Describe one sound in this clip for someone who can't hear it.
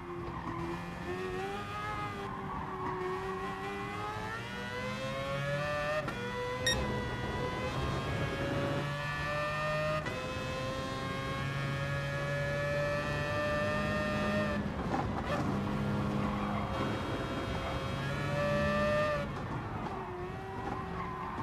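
A racing car engine roars, revving up through the gears with sharp drops at each shift.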